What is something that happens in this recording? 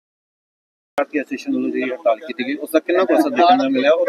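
A middle-aged man speaks into a microphone with animation.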